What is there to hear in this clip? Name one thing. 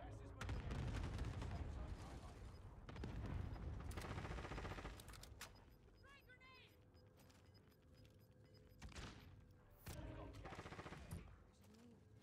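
A man talks into a close microphone with animation.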